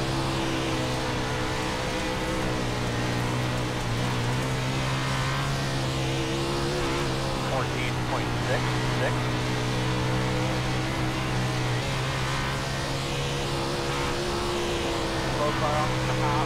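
A race car engine roars steadily at high revs.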